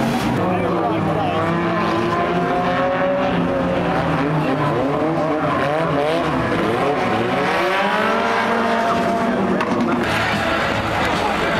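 Several car engines roar and rev loudly, close by.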